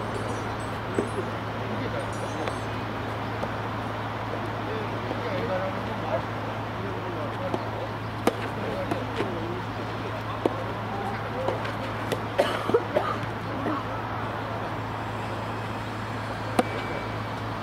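Tennis balls pop off rackets in a rally.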